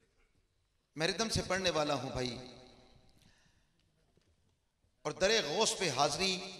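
A man sings into a microphone in bursts, loud and echoing through a loudspeaker.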